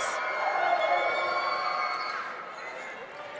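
A crowd cheers.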